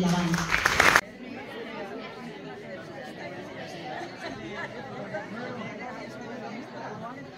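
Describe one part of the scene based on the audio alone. A crowd of people chatter and murmur around.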